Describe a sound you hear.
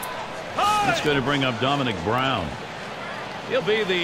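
A crowd murmurs in a large stadium.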